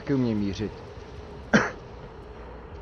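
A shell explodes with a sharp bang.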